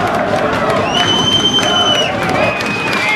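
A referee blows a long whistle blast.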